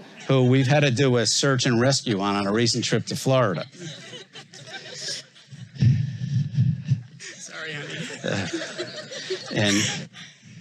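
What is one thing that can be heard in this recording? An older man speaks warmly and clearly.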